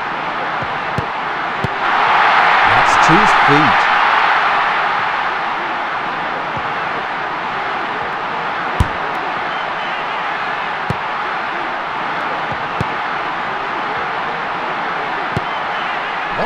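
A football is kicked with short, sharp thuds.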